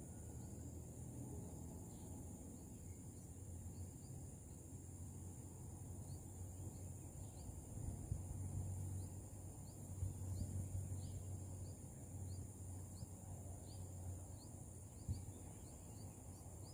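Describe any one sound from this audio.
Wind blows through leaves outdoors.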